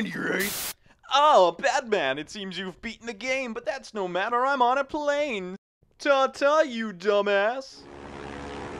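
A man speaks with sly, gleeful animation, close by.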